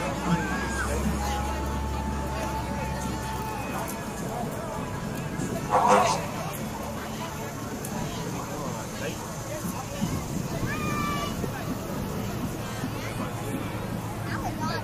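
A crowd chatters outdoors along a street.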